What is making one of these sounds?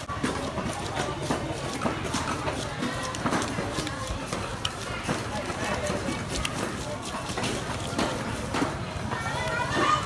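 A knife scrapes and taps on fish on a board.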